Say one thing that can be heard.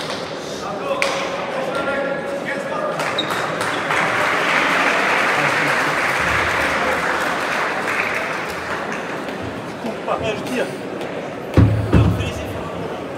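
A crowd murmurs and cheers, swelling and then settling.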